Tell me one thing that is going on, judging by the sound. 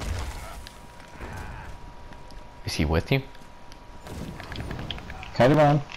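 Magic spells crackle and burst in combat.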